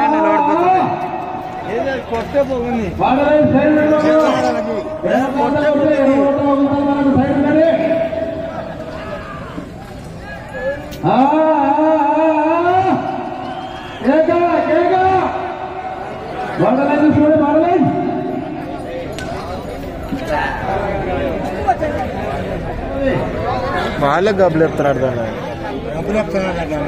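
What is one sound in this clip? A man calls out loudly in long, drawn-out cries.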